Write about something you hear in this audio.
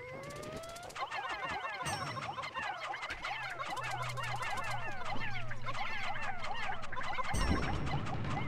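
Many small creatures chirp and squeak rapidly in high voices.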